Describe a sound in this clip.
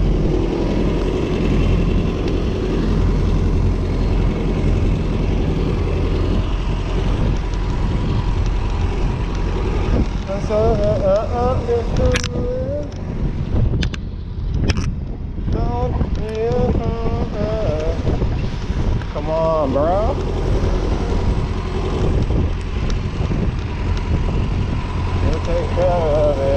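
Wind rumbles and buffets steadily outdoors as a bicycle rides along.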